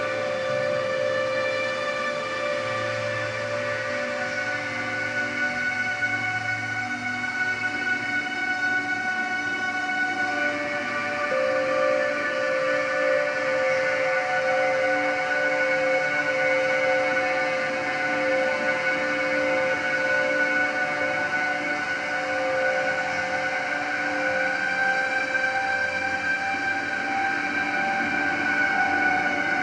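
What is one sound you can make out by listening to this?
Steady electronic music with sustained droning tones plays through loudspeakers.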